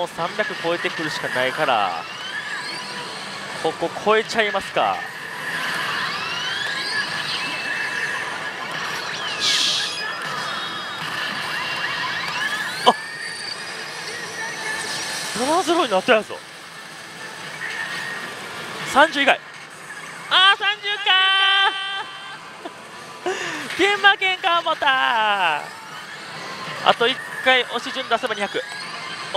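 A slot machine plays electronic music and sound effects.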